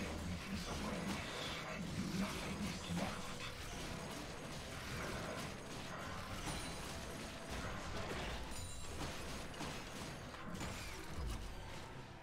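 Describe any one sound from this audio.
Blows and impacts thud sharply again and again.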